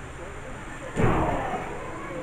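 A body thuds heavily onto a wrestling ring.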